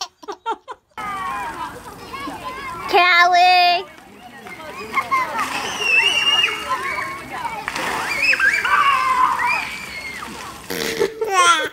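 Young children shout and squeal outdoors.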